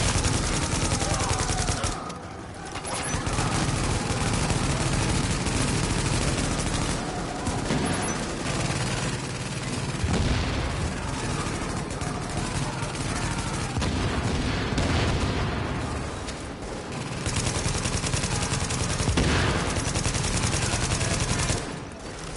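Automatic rifle fire rattles.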